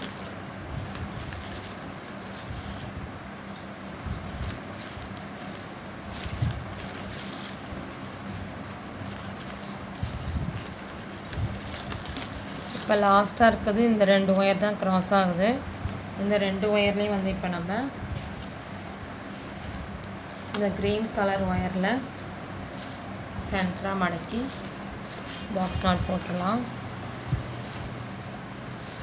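Plastic strips rustle and crinkle as hands weave them.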